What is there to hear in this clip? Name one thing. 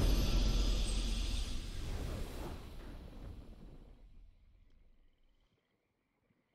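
A triumphant game fanfare rings out and fades away.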